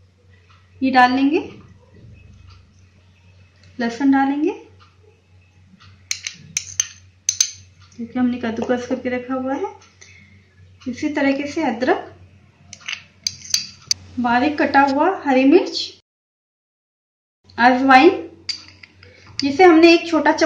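A metal spoon taps and scrapes against a small glass bowl.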